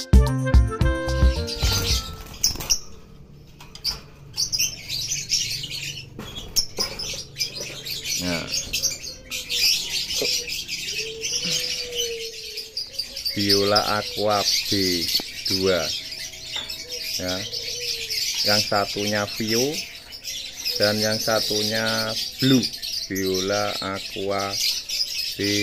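Many caged birds chirp and chatter nearby.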